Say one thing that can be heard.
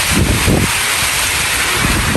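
Rainwater drips and splashes from a roof edge.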